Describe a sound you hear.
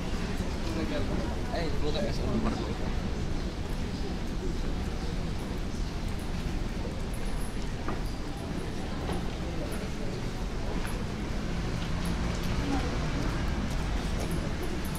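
Footsteps tap on a stone pavement.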